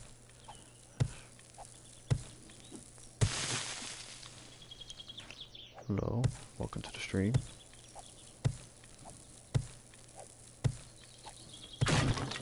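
Sharp thuds of a stone axe strike the ground again and again.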